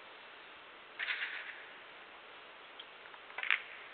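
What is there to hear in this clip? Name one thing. Billiard balls clack together as they are gathered and racked.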